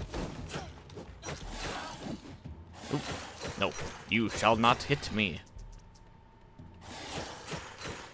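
Swords swish and clash in a fight.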